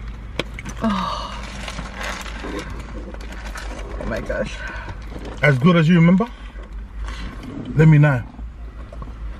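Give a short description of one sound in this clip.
Paper wrappers rustle and crinkle.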